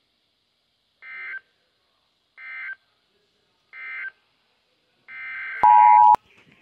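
A weather radio beeps in short bursts.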